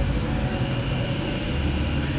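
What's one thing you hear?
Water pours into an engine's radiator.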